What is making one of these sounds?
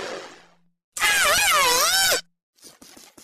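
A large dinosaur gives a shrill, wavering roar.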